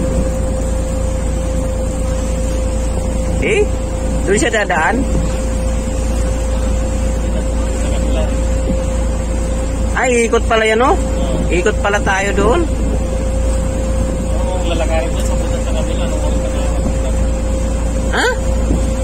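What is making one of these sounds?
Water laps against the hull of a small boat.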